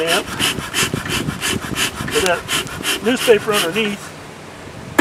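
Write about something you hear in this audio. A bee smoker's bellows puff rhythmically, hissing out bursts of smoke.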